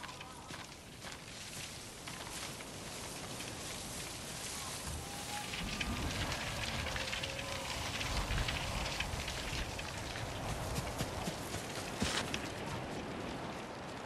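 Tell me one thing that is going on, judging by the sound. Strong wind gusts through tall grass.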